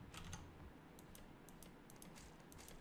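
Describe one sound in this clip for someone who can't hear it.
Short clicks sound as items are picked from a menu.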